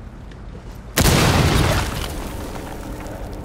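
A loud explosion blasts and rumbles, then fades.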